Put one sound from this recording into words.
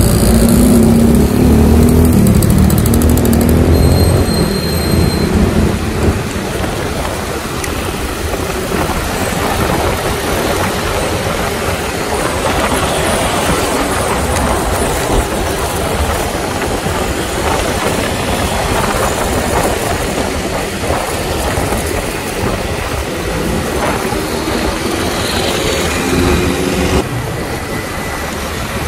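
Other motorcycles and cars drive by on the road.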